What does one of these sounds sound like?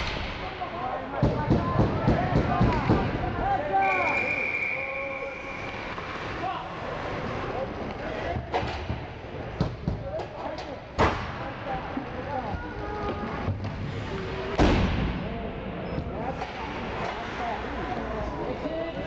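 Skates scrape and carve across the ice in a large echoing rink.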